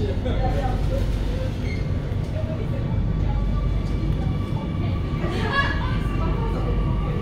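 A train rumbles steadily as it runs along the track.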